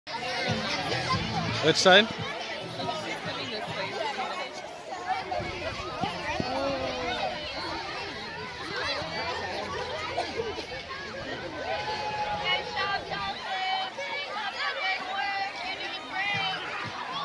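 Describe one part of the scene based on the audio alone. A crowd of children chatter and shout excitedly outdoors.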